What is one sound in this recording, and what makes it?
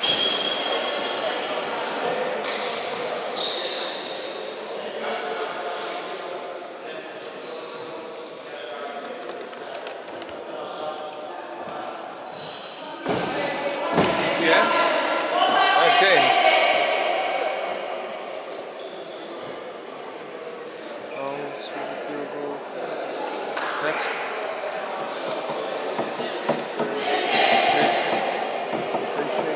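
Sneakers squeak on a hardwood floor in a large echoing hall.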